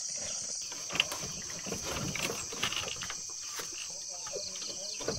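Light knocks and rustles come as a boy hangs something up.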